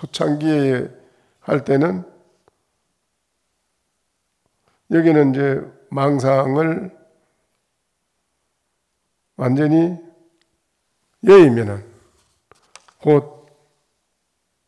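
An elderly man speaks slowly and calmly through a microphone, with long pauses.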